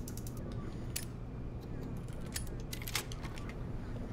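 A door swings open.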